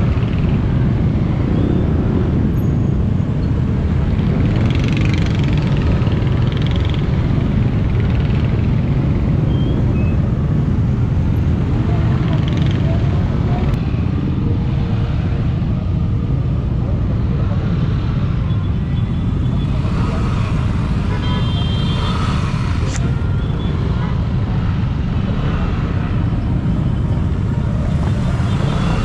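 Many motorcycles and scooters ride in a group.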